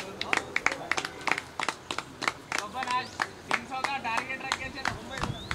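Fielders clap their hands outdoors.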